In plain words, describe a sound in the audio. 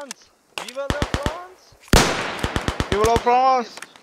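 A rifle bolt clicks as it is worked back and forth.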